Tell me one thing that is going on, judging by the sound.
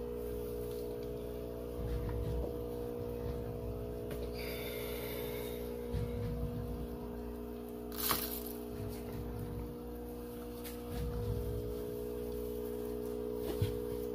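A hand rustles and scrapes through dry sawdust.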